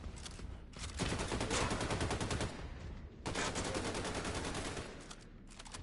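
A gun fires rapid automatic bursts.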